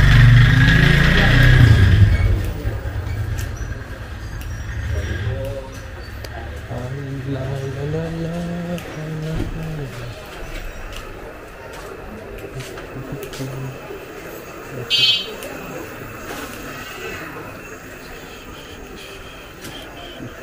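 A motor scooter hums along close by in a narrow lane.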